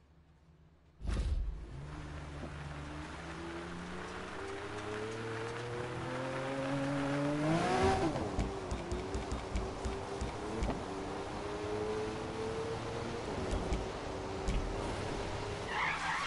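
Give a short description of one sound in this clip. A sports car engine revs and roars as it accelerates, shifting gears.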